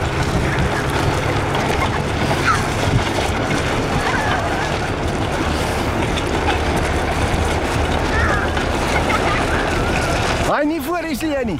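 A board scrapes and rumbles over a dirt track.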